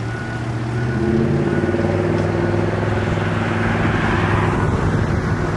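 A fire engine's engine revs up as it pulls forward.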